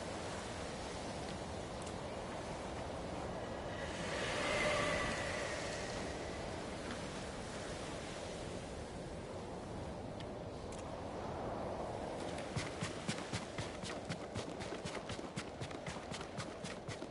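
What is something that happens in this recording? Wind blows steadily outdoors, gusting loudly at times.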